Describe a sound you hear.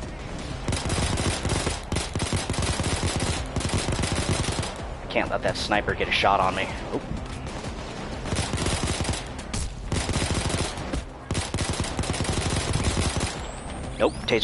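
Rapid gunfire crackles loudly and steadily.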